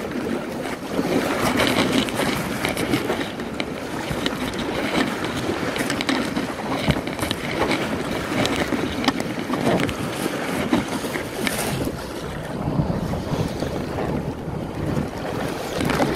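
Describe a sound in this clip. Choppy waves slap and splash against a kayak.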